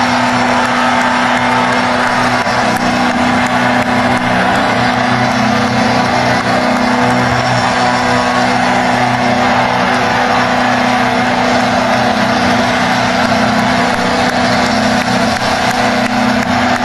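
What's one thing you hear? A rock band plays loudly through large loudspeakers outdoors.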